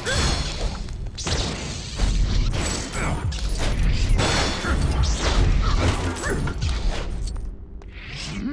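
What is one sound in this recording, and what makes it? Loud blasts and clattering debris crash repeatedly.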